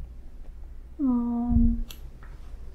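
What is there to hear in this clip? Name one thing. A woman lets out a short, drawn-out hum.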